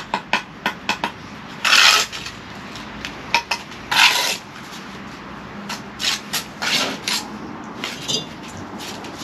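A bricklayer's trowel taps on brick.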